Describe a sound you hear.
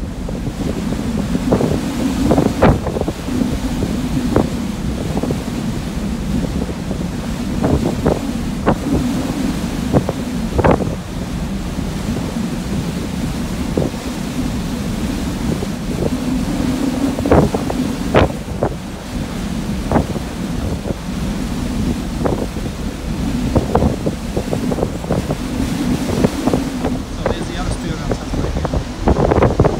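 A ship's engine rumbles low and steady.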